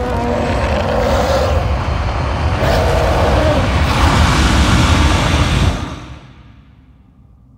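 A loud blast of energy rumbles, swells and then fades away.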